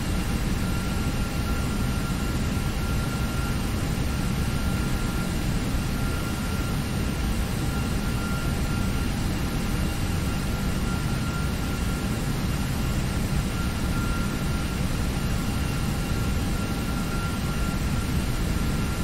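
Jet engines roar steadily, heard from inside a cockpit.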